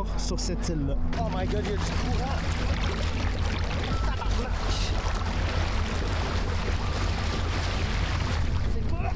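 A boat engine drones steadily throughout.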